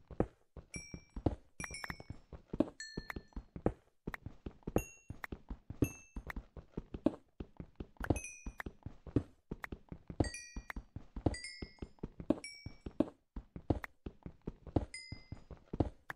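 Blocks of stone crack and break apart.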